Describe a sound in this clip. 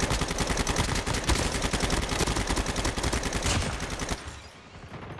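Rapid gunfire rattles loudly in a game.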